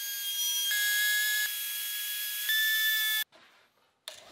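A wood router whines at high speed.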